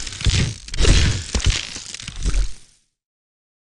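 Video game battle effects clash and thump with booming hits.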